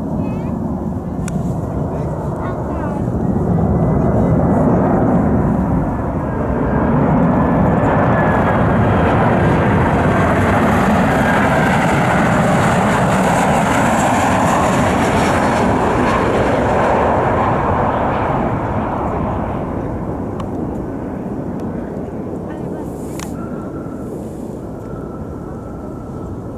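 Jet engines roar loudly as an airliner flies low overhead and slowly fades.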